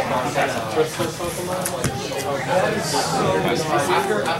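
Playing cards rustle and slide as they are handled.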